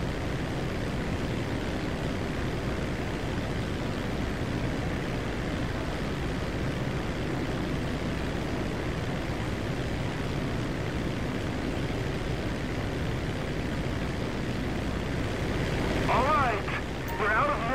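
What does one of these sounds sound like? A small propeller plane's engine drones steadily close by.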